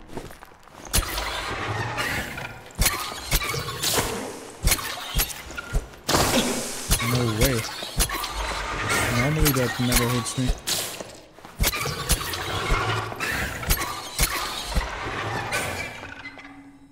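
Legs clatter and thump on stone.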